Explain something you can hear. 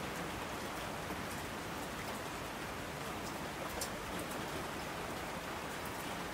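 Water rushes down streams in a constant roar.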